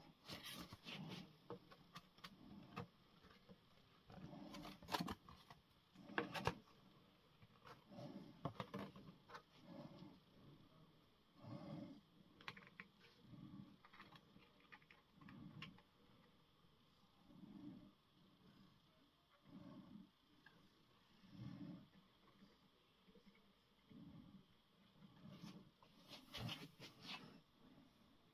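Small plastic parts click and clatter as hands fit them together.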